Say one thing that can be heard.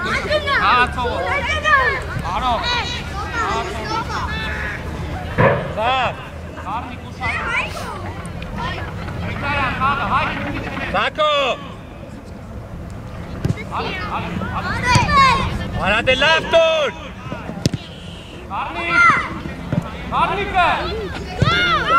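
Young boys shout and call out across an open playing field.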